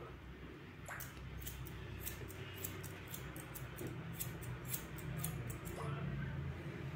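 Scissors snip through hair in quick bursts.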